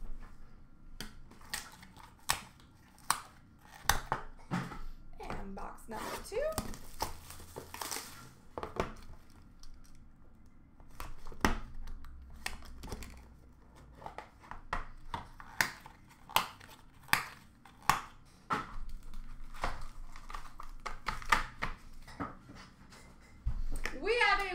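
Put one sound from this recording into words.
Hard plastic cases click and tap against a glass counter.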